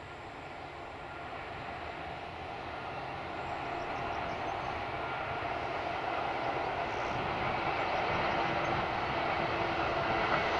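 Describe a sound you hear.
A diesel locomotive engine rumbles and grows louder as it approaches.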